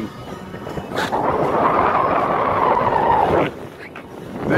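Wind gusts across open water.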